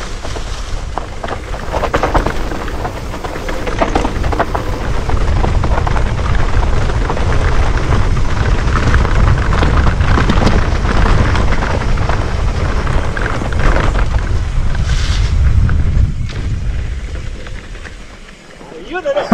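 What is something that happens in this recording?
Mountain bike tyres roll downhill over a rough dirt trail.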